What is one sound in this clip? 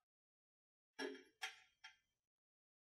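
A metal scriber scratches briefly across metal.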